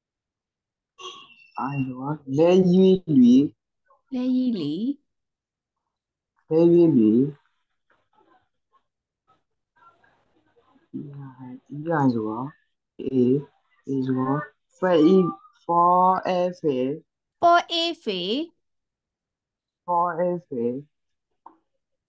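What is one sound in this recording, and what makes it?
A woman speaks clearly over an online call, pronouncing syllables slowly.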